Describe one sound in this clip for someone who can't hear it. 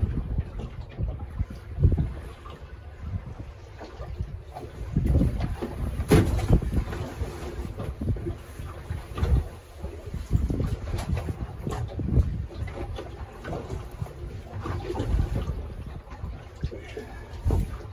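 Wind buffets the boat in gusty bursts.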